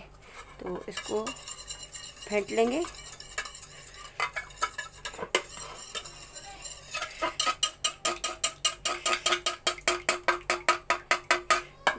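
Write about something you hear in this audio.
A knife beats an egg against a ceramic bowl with rapid clinking taps.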